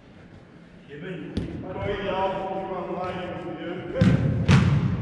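A man shouts across a large echoing hall.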